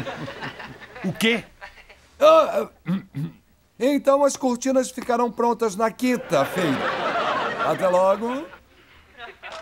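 A middle-aged man speaks animatedly into a telephone.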